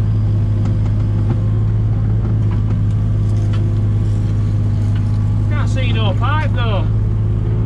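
A digger's diesel engine drones steadily from inside its cab.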